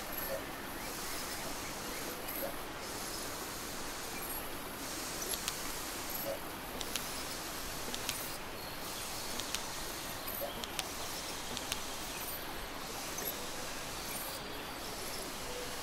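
Radio static hisses steadily.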